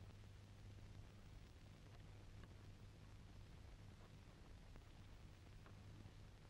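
Footsteps tap softly across a hard floor.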